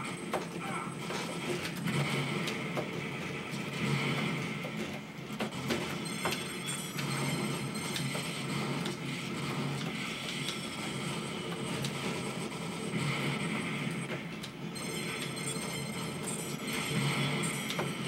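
Gunfire and explosions crackle and boom from an arcade game.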